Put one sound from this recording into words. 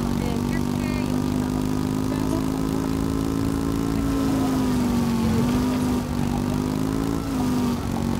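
A motor scooter engine hums steadily, its pitch dipping slightly now and then.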